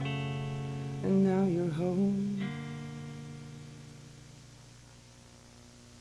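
An electric guitar plays a chord that rings out and slowly fades.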